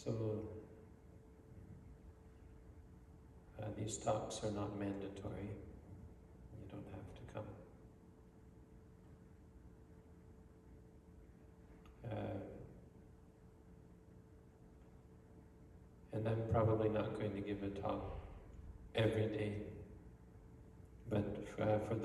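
A man speaks calmly and slowly into a microphone, with long pauses.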